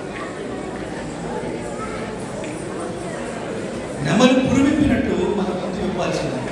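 A middle-aged man speaks calmly into a microphone over a loudspeaker in a large hall.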